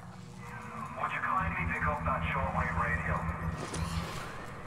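A man speaks calmly over a crackly radio.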